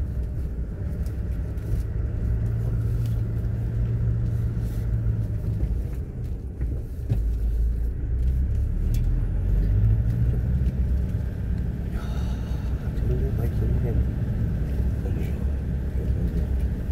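Footsteps tread steadily along a paved road.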